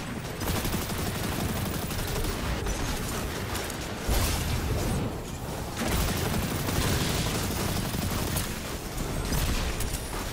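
Game weapons fire rapidly with heavy electric crackling.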